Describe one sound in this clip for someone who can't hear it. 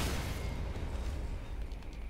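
A heavy sword swings through the air.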